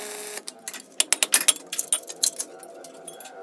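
Metal plates clink and clatter as they are set down.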